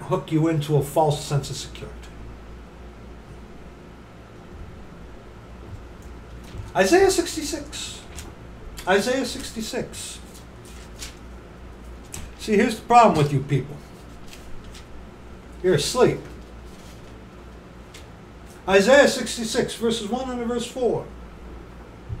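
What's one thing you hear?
A middle-aged man speaks close to a microphone in short bursts, with pauses between.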